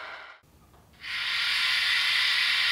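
Compressed air hisses steadily from a locomotive.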